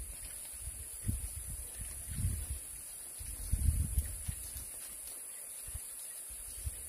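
Sticks of firewood knock together as they are pushed into a fire.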